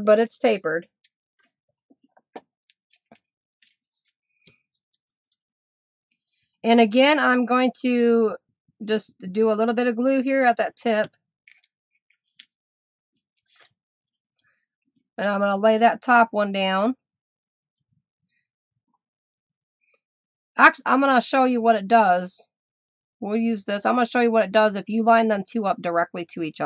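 Paper strips rustle and crinkle as they are folded.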